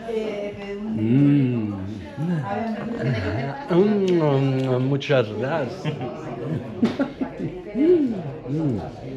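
A second man talks loudly close by.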